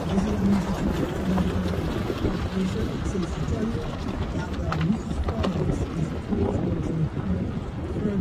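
Tyres rumble and crunch over a gravel road.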